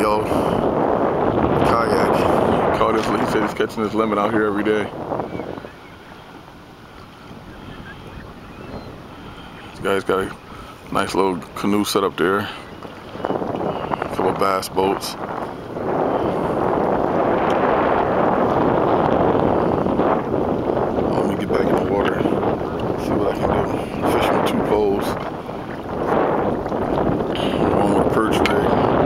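Small waves slap and lap against a boat.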